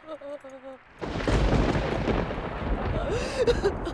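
A young woman moans softly.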